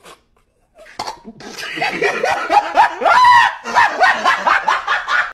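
A young man laughs loudly and heartily.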